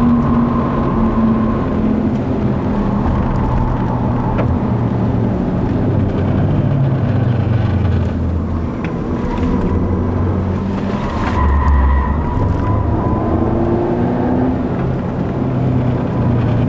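A car engine hums and revs inside the car as it drives.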